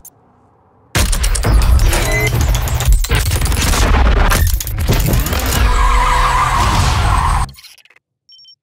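A car engine roars loudly as a racing car speeds along a road.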